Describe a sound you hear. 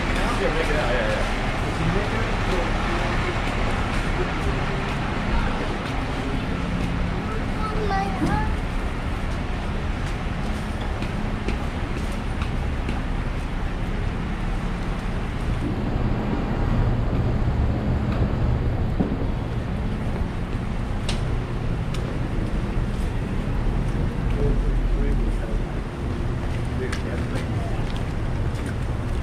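City traffic rumbles steadily along a busy street.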